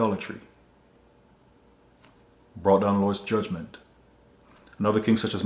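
A man speaks calmly and close by, with pauses between phrases.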